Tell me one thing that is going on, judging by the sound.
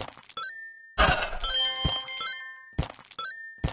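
A bright chiming jingle rings out for a reveal.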